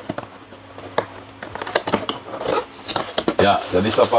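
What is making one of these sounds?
Cardboard flaps scrape and thump as a box is opened.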